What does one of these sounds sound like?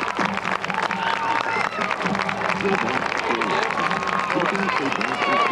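A marching band's drums beat steadily outdoors.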